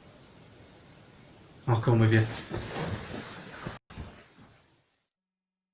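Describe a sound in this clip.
A sofa creaks and rustles as a man moves off it.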